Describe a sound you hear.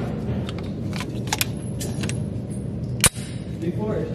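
A pistol's metal parts click as it is handled.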